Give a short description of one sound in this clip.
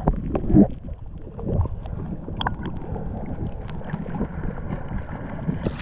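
Small waves lap gently outdoors.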